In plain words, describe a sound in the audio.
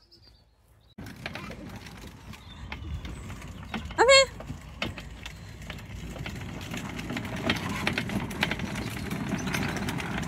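A toy ride-on tractor's electric motor whirs along a path.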